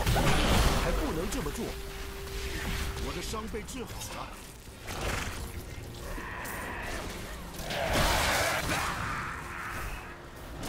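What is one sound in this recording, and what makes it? Magic spells crackle and whoosh in a video game, with bursts of noisy blasts.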